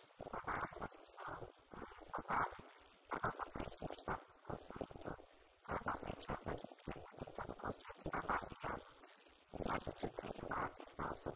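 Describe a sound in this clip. A woman speaks steadily through a microphone and loudspeaker in a large echoing hall.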